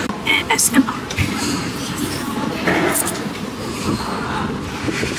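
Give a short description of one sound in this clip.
A young woman slurps noodles loudly up close.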